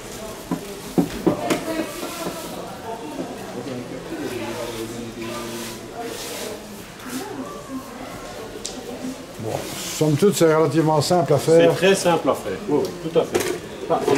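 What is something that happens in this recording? A man talks calmly and clearly, close by.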